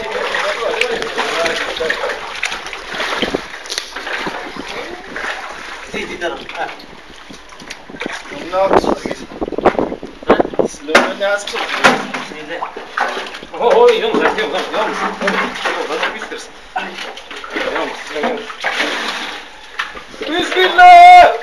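Young men talk with animation nearby.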